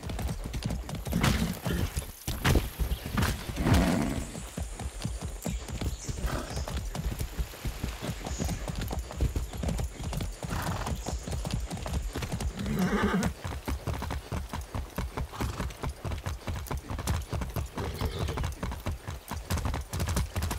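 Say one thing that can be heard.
A horse's hooves thud steadily at a gallop.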